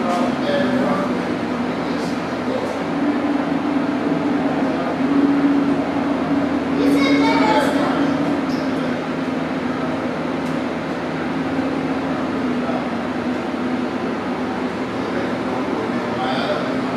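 Computers hum steadily in a room.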